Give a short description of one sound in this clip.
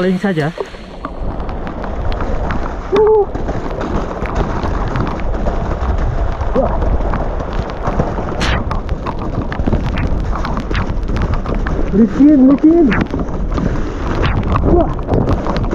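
Bike tyres roll and crunch over a wet, rough dirt trail.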